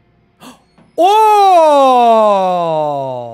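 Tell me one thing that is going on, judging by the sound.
A young man lets out a long, loud, drawn-out shout into a microphone, his voice slowly falling.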